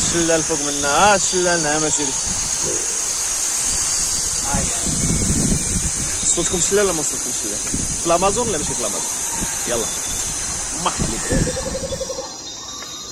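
A waterfall rushes and splashes steadily nearby.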